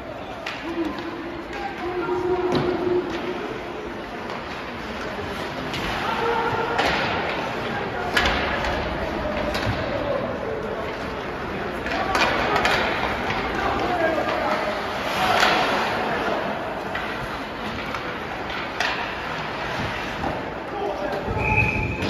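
Skates scrape and carve across the ice in a large echoing arena.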